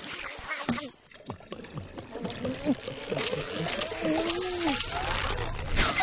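A high-pitched chipmunk voice shouts excitedly.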